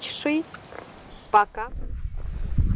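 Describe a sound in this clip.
A young woman speaks casually, close by.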